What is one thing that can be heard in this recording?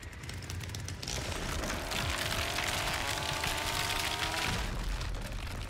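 A chainsaw roars loudly as it cuts through a door.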